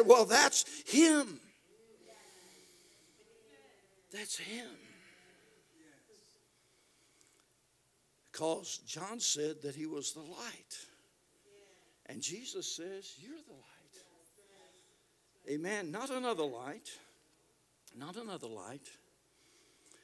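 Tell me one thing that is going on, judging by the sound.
An elderly man speaks with animation into a microphone, at times shouting, with pauses between phrases.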